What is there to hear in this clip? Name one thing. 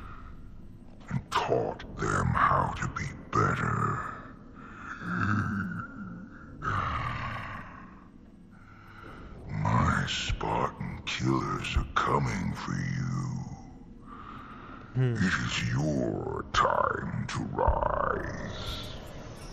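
A man speaks into a microphone close by.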